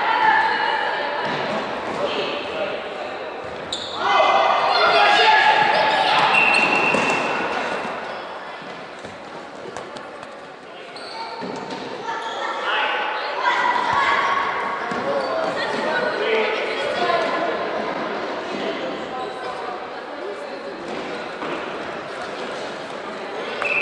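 Children shout and call out across a large echoing hall.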